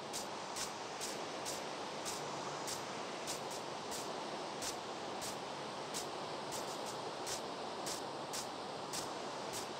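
Footsteps thud softly on grass at a steady walking pace.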